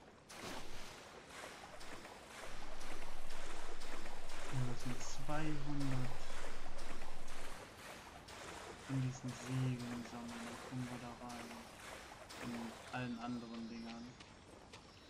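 Water splashes steadily as a swimmer paddles.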